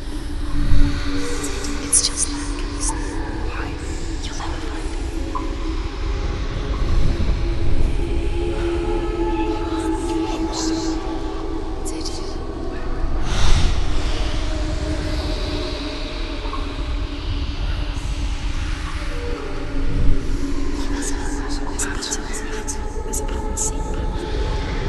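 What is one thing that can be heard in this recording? Magical energy crackles and hisses.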